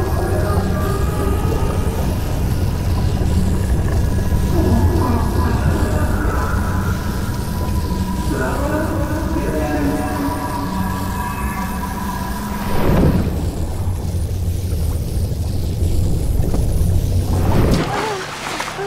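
Water rumbles and bubbles in a low, steady murmur.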